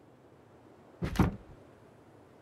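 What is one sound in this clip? A game inventory menu closes with a short thump.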